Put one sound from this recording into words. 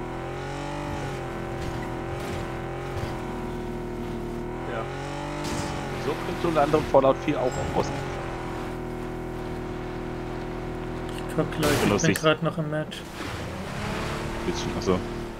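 A car engine hums steadily, rising and falling in pitch as the car drives.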